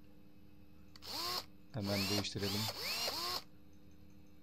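An impact wrench whirs in short bursts, loosening wheel nuts.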